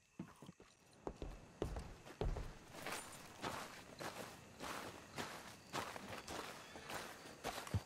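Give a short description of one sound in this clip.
Footsteps walk over a dirt road outdoors.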